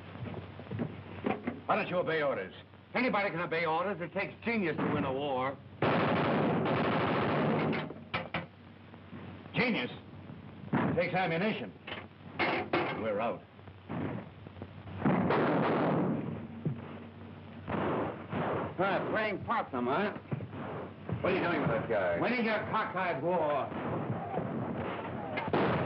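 A man talks urgently, heard through an old, muffled recording.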